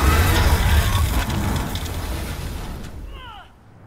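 Magic lightning crackles and booms loudly.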